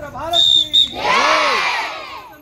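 A crowd of men and women cheer and shout together outdoors.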